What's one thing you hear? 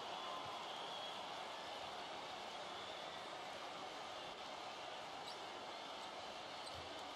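A large crowd murmurs steadily in an arena.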